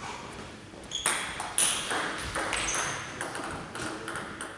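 A table tennis ball clicks back and forth off paddles and the table in an echoing hall.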